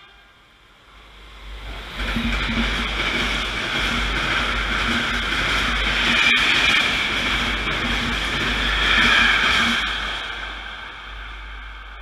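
A train rumbles and clatters past close by, then fades.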